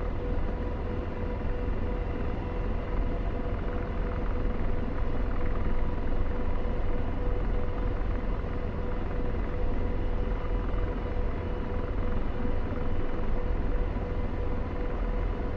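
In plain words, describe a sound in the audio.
A steady whine hums inside a helicopter cockpit.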